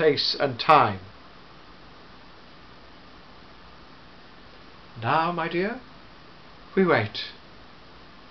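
A middle-aged man speaks theatrically, close by, in short bursts with pauses.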